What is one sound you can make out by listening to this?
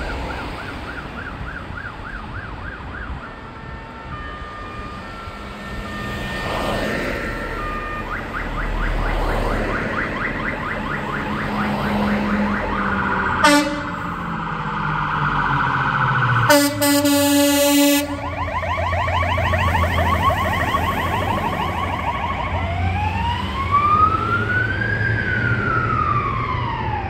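A siren wails, drawing closer and then moving away.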